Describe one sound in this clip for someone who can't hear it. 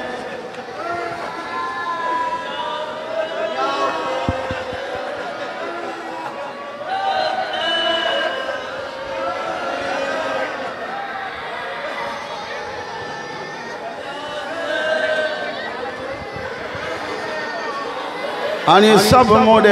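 A group of children chant together in high voices.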